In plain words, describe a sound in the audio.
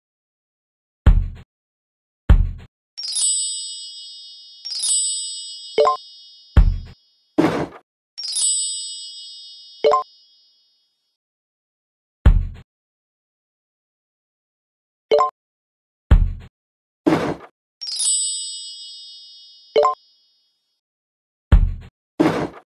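Short clicks and bright, ringing chimes sound at uneven intervals.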